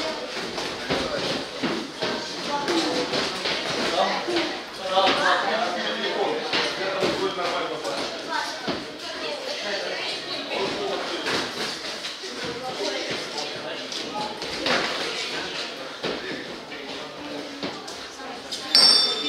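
A crowd of spectators talks and shouts in a large echoing hall.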